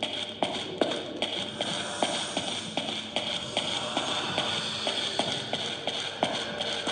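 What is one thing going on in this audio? Footsteps tap on a wooden floor at a steady walking pace.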